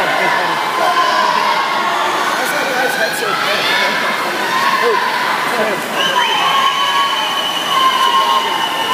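A crowd cheers and shouts in an echoing indoor pool hall.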